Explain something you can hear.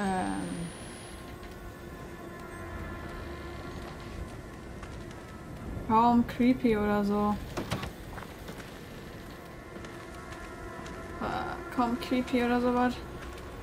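A young woman speaks close to a microphone, with high-pitched, drawn-out exclamations.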